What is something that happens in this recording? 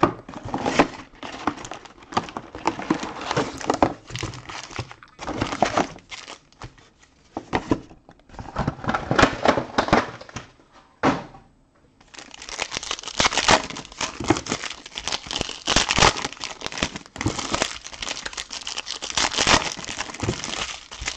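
Plastic wrapping crinkles and rustles as it is torn open and handled.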